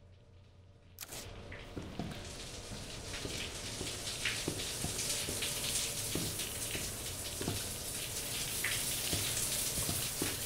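Footsteps crunch over debris on a hard floor.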